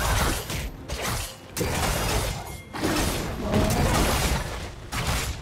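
Video game combat effects clash and crackle.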